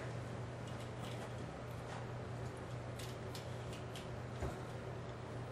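Plastic sunglasses click and tap as they are handled and put on.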